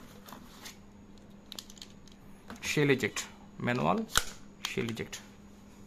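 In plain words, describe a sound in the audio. Plastic rustles as an item is lifted from a foam-lined case.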